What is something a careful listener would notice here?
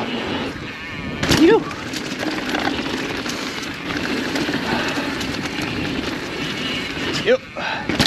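A mountain bike rattles and clatters over bumps.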